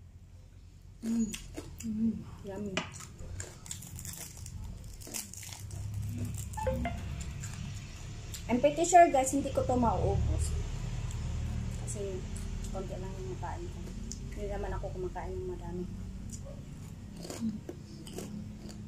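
A young woman chews crunchy food close to a microphone.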